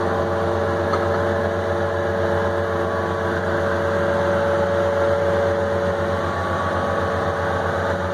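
A hydraulic pump whines.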